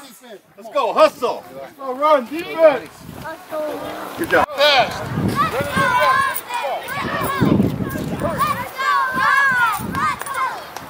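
Young children shout and chant loudly close by.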